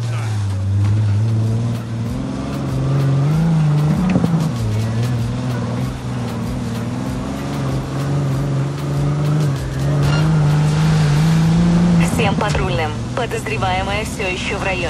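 A car engine hums steadily and rises and falls in pitch as the car speeds along.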